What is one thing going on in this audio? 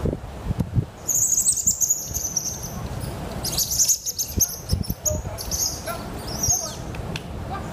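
Small animals give high chirps and squeaks outdoors.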